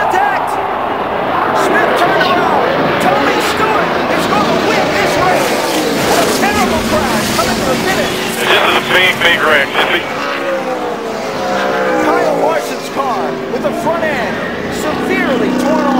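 A large crowd screams and roars.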